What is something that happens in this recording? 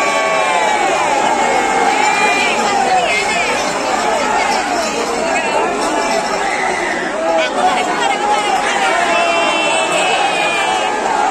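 A large crowd cheers and shouts loudly all around.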